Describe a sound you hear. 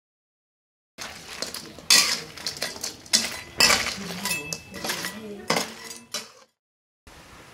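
A metal spatula scrapes and clatters in a wok.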